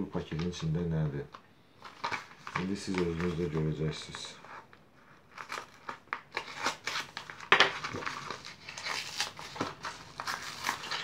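A padded plastic envelope crinkles and rustles as it is handled.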